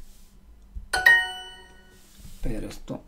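A bright chime rings once.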